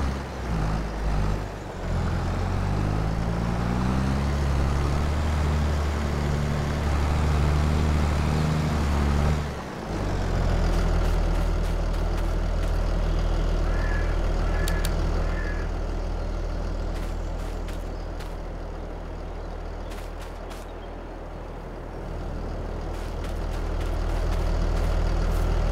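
A cultivator rattles and scrapes through the soil.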